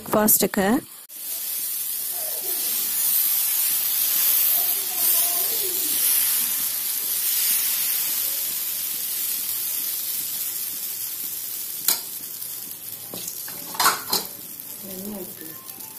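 Batter sizzles and hisses on a hot griddle.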